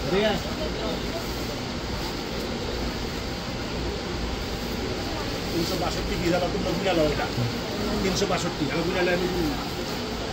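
Hands rustle a woven plastic sack.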